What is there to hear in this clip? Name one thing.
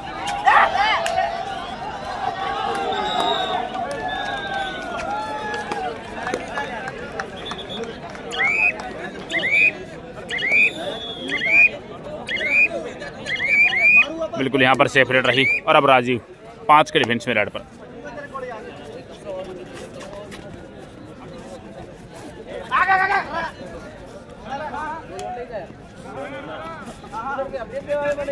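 A crowd murmurs and chatters in the background.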